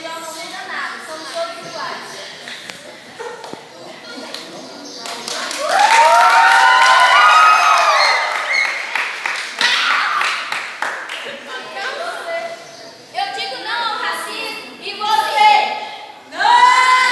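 Teenage girls sing together loudly in an echoing room.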